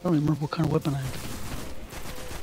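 Gunfire rattles from a video game.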